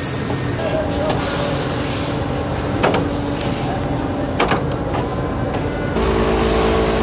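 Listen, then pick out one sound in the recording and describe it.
A machine hums and clanks steadily.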